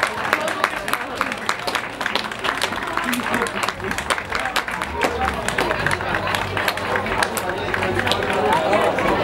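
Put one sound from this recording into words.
A crowd claps hands in a brisk, steady rhythm.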